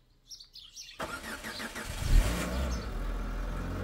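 A car engine cranks and starts with a roar.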